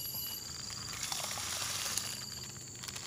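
Powder pours and hisses softly into water.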